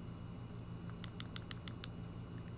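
Short electronic menu blips tick in quick succession.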